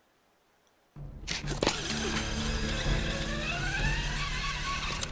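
A pulley whirs and hisses along a taut rope.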